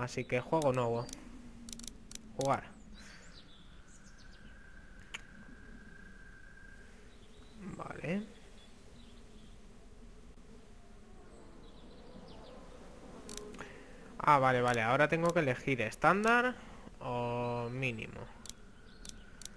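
A young man speaks animatedly into a close microphone.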